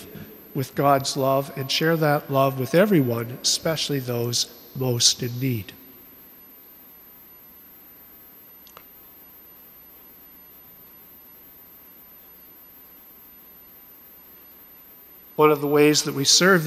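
An elderly man speaks calmly through a microphone in an echoing hall.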